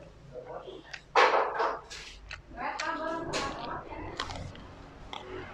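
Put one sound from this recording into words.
A crisp chili pepper crunches as a young man bites into it.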